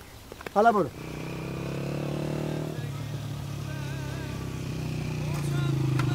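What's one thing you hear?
A motorcycle engine hums as it approaches along a road.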